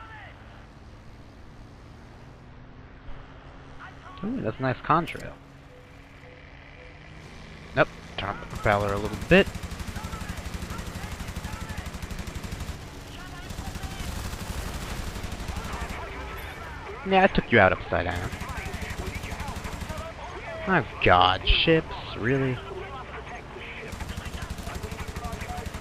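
A piston-engine fighter plane drones in flight.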